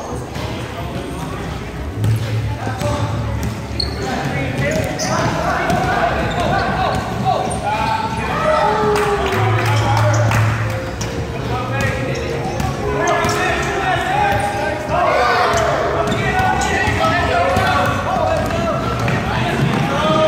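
Children shout and chatter excitedly in a large echoing gym.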